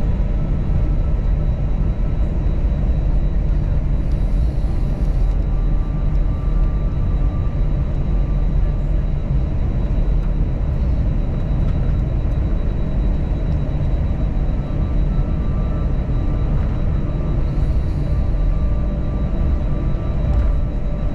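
An airliner's wheels rumble over the taxiway.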